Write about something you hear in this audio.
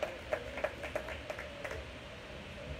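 A drummer strikes drums and cymbals.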